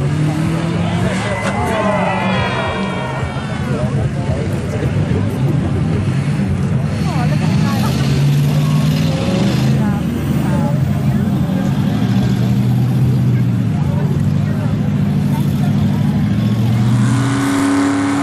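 A car engine revs and roars loudly outdoors.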